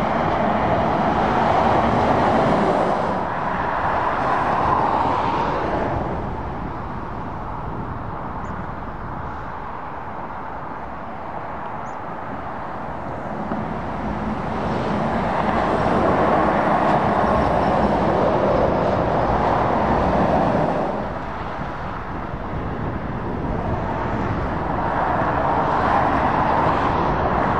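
Steady traffic hums along a road in the distance.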